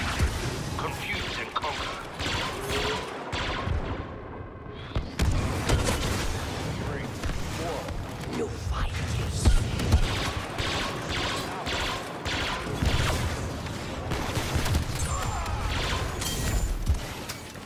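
Blaster shots fire rapidly.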